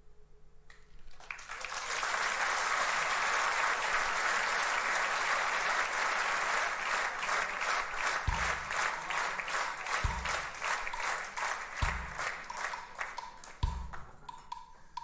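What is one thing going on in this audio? A large audience claps in a big hall.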